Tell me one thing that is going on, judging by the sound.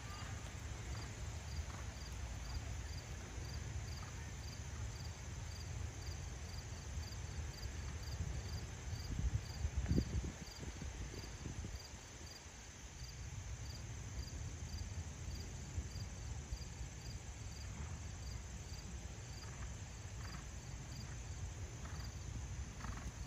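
A horse canters on soft sand at a distance.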